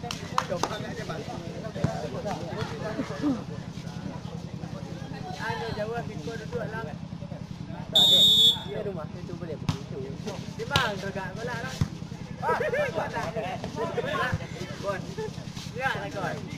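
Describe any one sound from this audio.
Young men shout and call out nearby outdoors.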